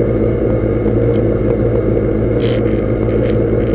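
Loose parts rattle and clatter inside the car.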